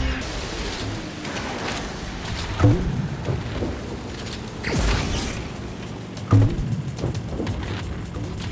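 A small boat engine hums steadily over water.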